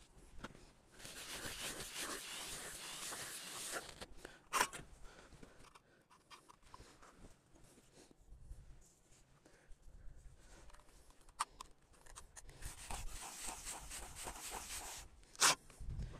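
A steel trowel scrapes and rasps across rough concrete.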